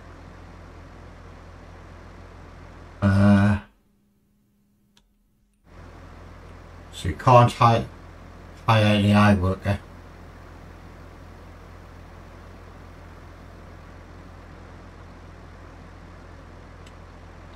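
A heavy machine's engine idles with a steady low rumble.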